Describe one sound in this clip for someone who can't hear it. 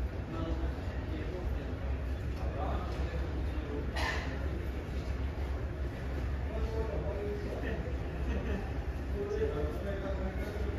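A tug engine rumbles steadily.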